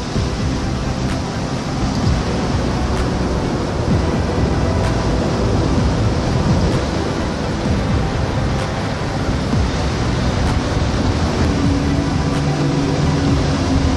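Sea waves wash softly against rocks.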